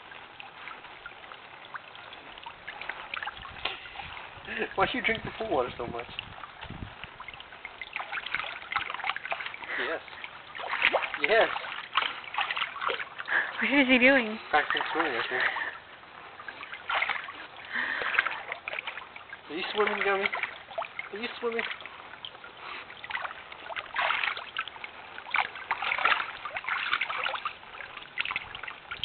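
A small fountain sprays and trickles into water.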